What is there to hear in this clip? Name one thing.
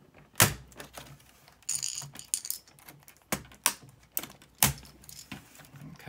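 Fingers tap and press on plastic keys.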